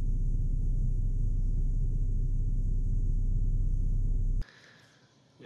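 A vehicle engine idles with a low, steady hum.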